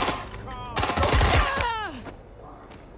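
Gunshots ring out with a metallic ringing tail.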